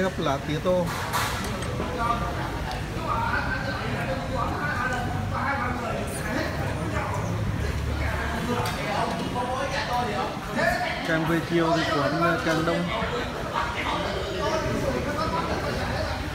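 A crowd of men chatter loudly nearby in a busy, echoing space.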